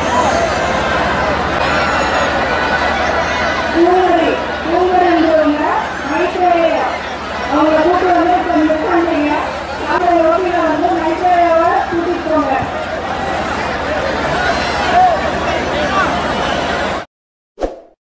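A large crowd cheers and chatters loudly outdoors.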